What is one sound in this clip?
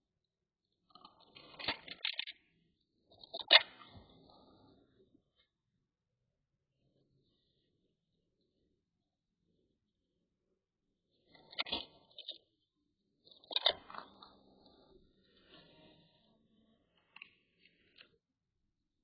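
A dog chews and tugs at a toy on the floor.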